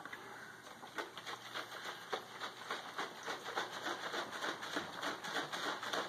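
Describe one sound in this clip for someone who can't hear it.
Liquid sloshes in a shaken jar.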